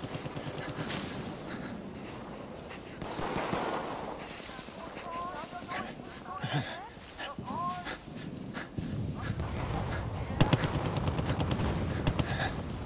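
Footsteps swish through tall grass at a steady pace.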